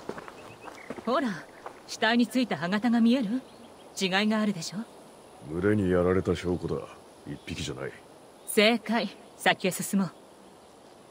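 A woman speaks calmly with animation.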